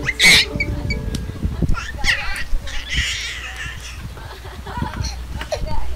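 Young people shout and laugh together outdoors.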